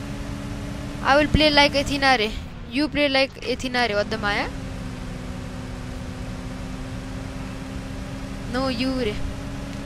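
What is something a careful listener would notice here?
A pickup truck engine hums steadily as it drives along a road.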